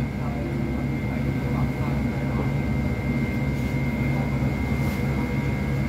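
A bus engine hums steadily from inside the cabin.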